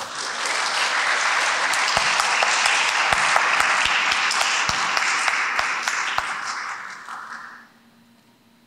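A congregation applauds in a large echoing hall.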